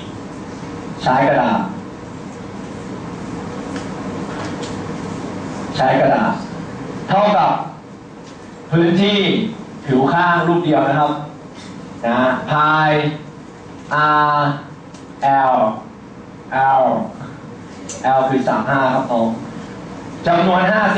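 A young man speaks calmly through a clip-on microphone, explaining in short bursts.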